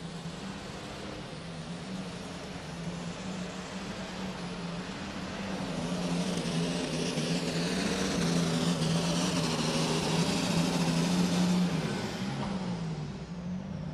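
A powerful tractor engine roars loudly and steadily under heavy strain.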